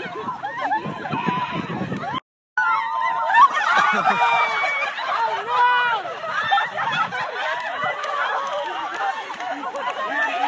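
A crowd of women shouts and cheers excitedly outdoors.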